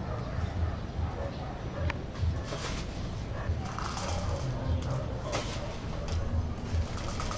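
Items clatter and rustle as a woman handles them.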